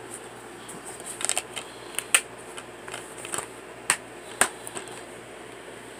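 A plastic case clicks and rattles as hands handle it.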